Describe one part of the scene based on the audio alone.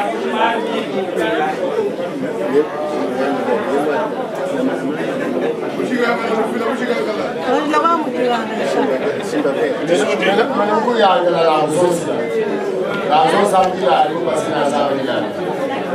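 A group of adult men and women chatter nearby.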